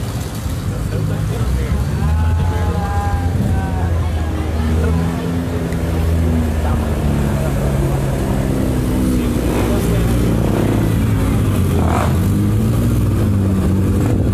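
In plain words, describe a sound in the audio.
An emergency vehicle's engine idles nearby.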